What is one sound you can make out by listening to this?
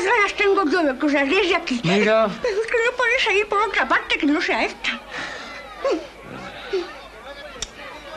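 A middle-aged man talks with animation, close by.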